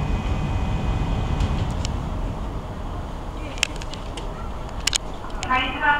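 Parked trains hum with a low, steady rumble outdoors.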